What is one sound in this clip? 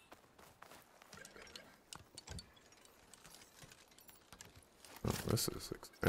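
Metal parts clink and rattle as they are pried loose.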